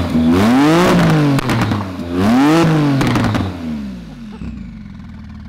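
A sports car engine revs loudly twice.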